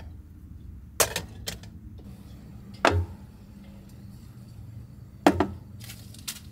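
Small objects knock as they are set down on a wooden table.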